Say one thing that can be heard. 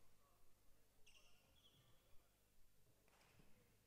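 Sports shoes squeak sharply on a hard court floor in a large hall.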